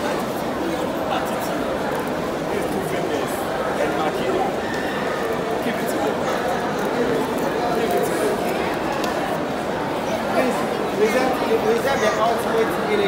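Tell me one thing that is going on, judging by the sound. A crowd of young children chatter and shout nearby.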